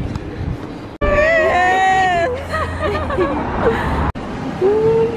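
A young woman laughs loudly outdoors.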